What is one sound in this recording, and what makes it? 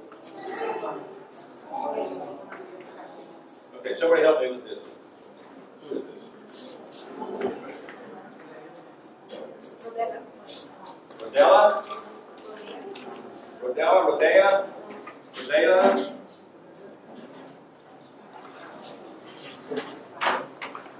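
A man speaks calmly into a microphone in a room that echoes a little.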